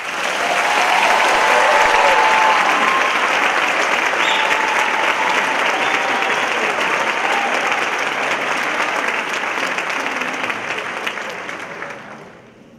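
A large children's choir sings in a big echoing hall.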